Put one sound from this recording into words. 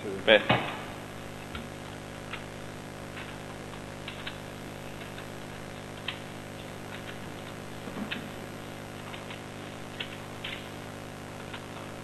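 Papers rustle and knock on a desk.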